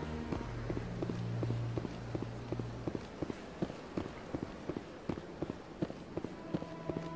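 Footsteps run quickly and steadily on a hard floor.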